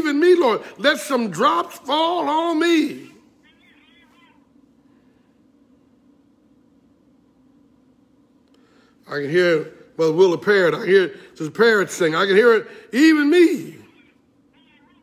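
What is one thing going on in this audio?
An older man speaks with feeling, close to a microphone.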